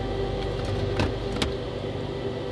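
A metal can rattles as a hand lifts it from a shelf.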